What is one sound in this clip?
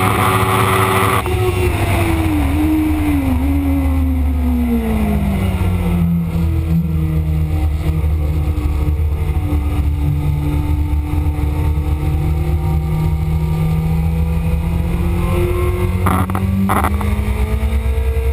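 A motorcycle engine roars at high revs, its pitch falling as it slows and then holding steady.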